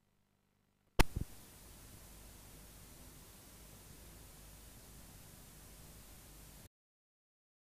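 Television static hisses steadily and then cuts off.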